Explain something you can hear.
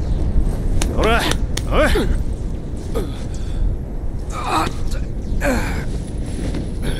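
A young man groans and speaks in pain.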